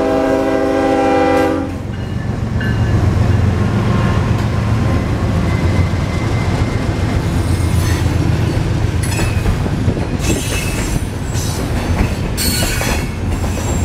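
Diesel locomotive engines rumble deeply as a train passes close by.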